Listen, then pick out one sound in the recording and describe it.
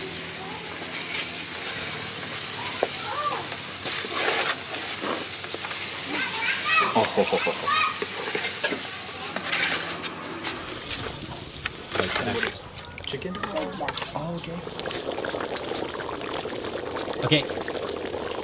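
A wood fire crackles under a pot.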